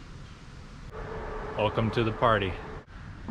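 A young man speaks cheerfully, close by.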